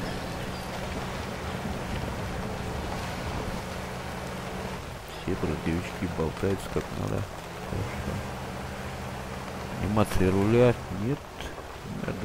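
A truck engine drones steadily as it drives over rough ground.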